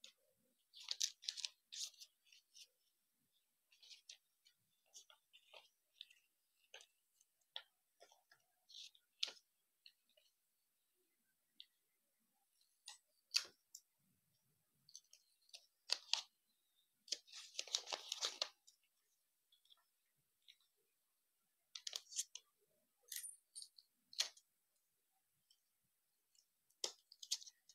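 Stiff paper rustles and crinkles close by.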